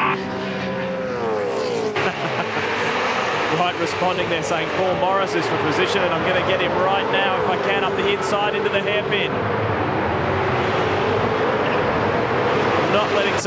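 Racing car engines roar at high revs as the cars speed past, rising and falling in pitch.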